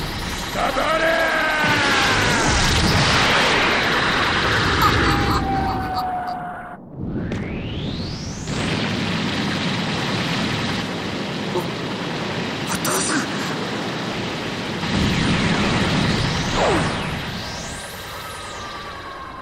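An energy blast roars and crackles.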